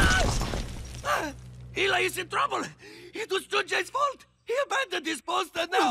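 A man's cartoonish voice groans and speaks in bursts.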